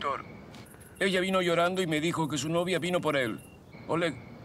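An older man speaks firmly on a phone.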